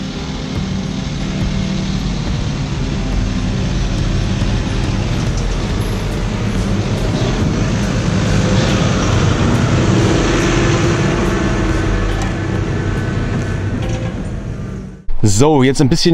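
A tractor engine rumbles as it approaches and passes close by.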